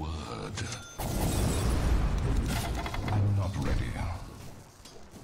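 Magic blasts and clashing blows burst out in a short fight.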